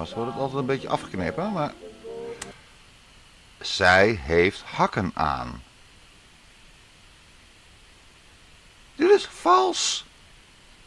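A man speaks softly and closely.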